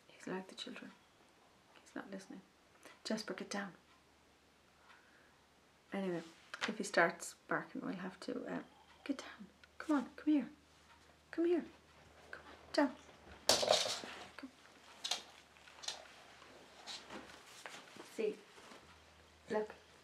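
A middle-aged woman talks calmly and close by, pausing now and then.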